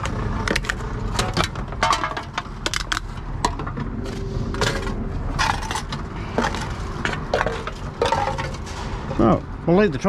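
Aluminium cans clink and rattle as they are fed into a machine.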